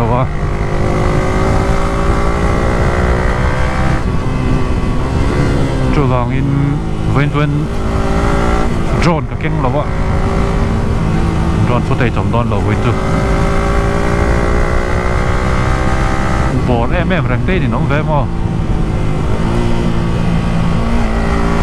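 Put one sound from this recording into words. A motorcycle engine drones loudly and revs up and down as gears change.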